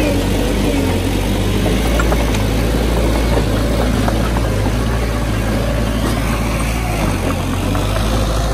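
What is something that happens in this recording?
A small bulldozer's diesel engine rumbles steadily nearby.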